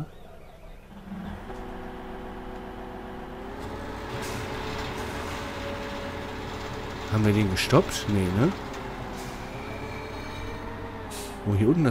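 A harvester engine hums and changes pitch.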